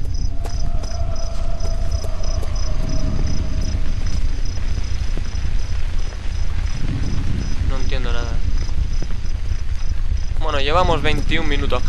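Footsteps crunch over grass and gravel.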